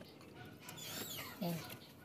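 A ratchet wrench clicks on a bolt.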